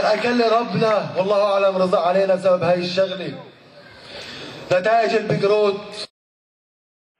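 A young man speaks with passion into a microphone, heard through loudspeakers in a large echoing space.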